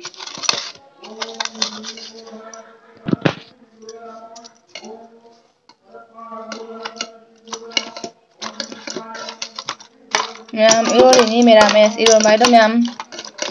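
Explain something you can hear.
A metal scoop scrapes and clinks against a glass bowl.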